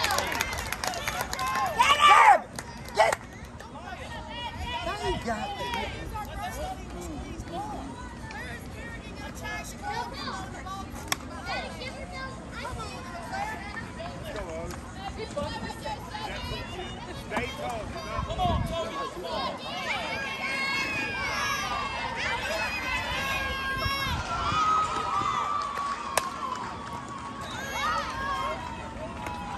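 Young women call out and cheer across an open field.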